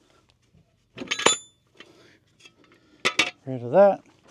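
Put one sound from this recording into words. A metal jack stand clanks as it is moved.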